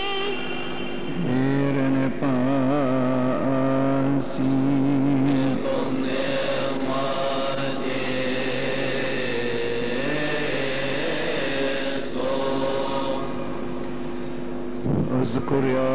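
A choir of men sings together in a slow chant.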